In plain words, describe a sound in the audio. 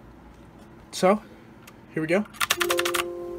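Keys on a mechanical keyboard click.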